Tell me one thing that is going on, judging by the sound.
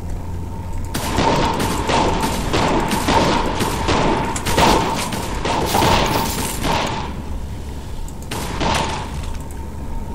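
Shots crack and blast in rapid bursts.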